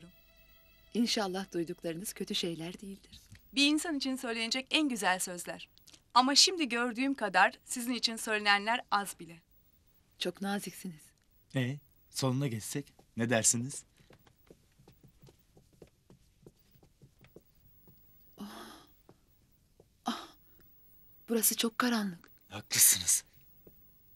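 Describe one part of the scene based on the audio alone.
A woman speaks with emotion nearby.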